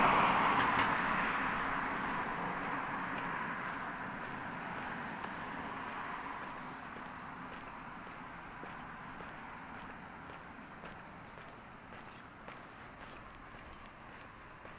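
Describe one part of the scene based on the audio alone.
Footsteps tap steadily on paving stones.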